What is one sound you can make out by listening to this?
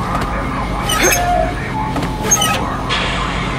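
A metal valve wheel squeaks and clanks as it turns.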